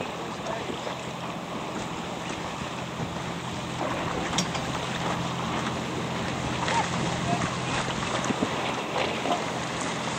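Strong wind buffets outdoors over open water.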